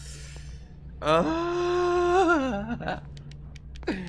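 A young man groans loudly and long into a close microphone.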